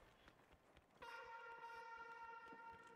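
A steady electronic warning tone sounds.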